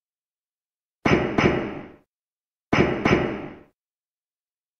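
Heavy footsteps thud in pairs, echoing briefly.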